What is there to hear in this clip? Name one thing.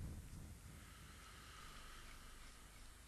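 A man recites in a drawn-out chant through a microphone and loudspeakers.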